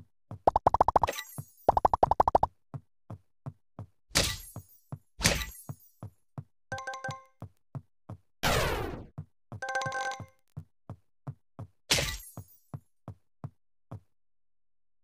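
Bright game chimes and pops ring out in quick bursts.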